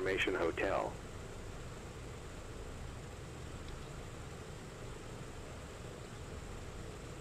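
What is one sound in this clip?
Aircraft engines idle with a low, steady rumble.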